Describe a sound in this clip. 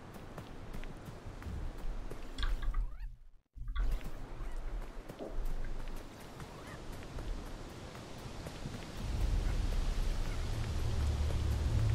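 Footsteps patter quickly along a dirt path.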